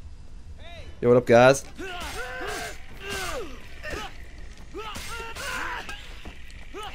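Fists and kicks land with heavy thuds in a brawl.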